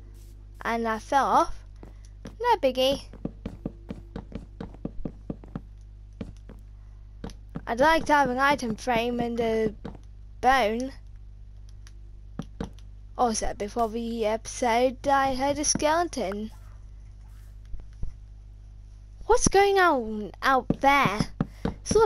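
Wooden blocks are set down with soft, quick knocks.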